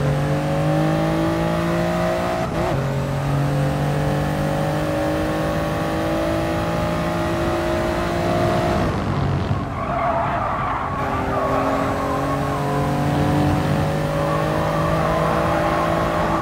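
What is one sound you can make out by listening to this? A racing car engine roars and climbs through the gears.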